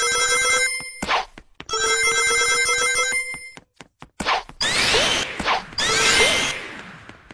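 A rushing whoosh sweeps past several times.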